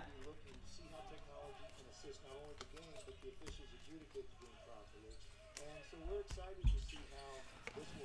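Trading cards shuffle and rustle in a man's hands.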